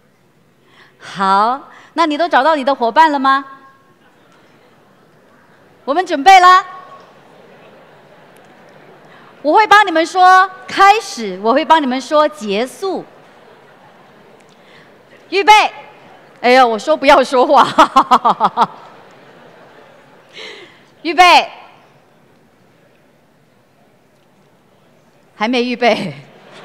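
A woman speaks with animation through a headset microphone in a large hall, pausing often.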